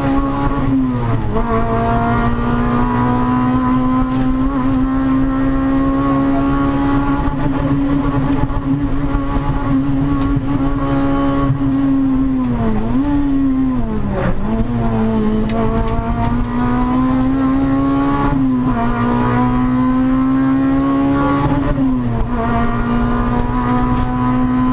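A car engine roars loudly at high revs, dropping briefly with each gear change.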